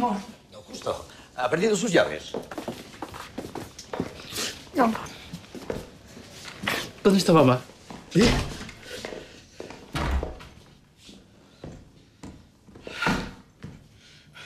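A young man speaks with emotion close by.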